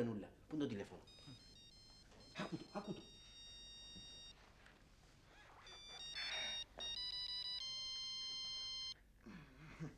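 Phone keypad tones beep in quick succession, followed by steady dialing tones.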